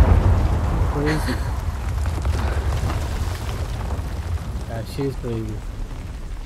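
A young woman speaks calmly and close.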